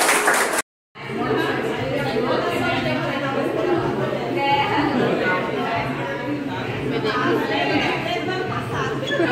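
Several women chatter at once.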